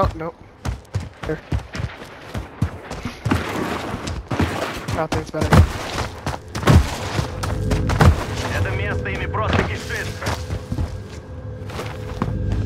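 Quick footsteps crunch on gravel and dirt.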